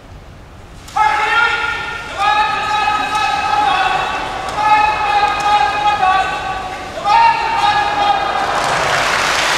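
A man calls out in a long, drawn-out chant.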